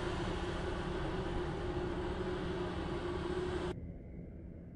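A generator runs with a steady loud hum.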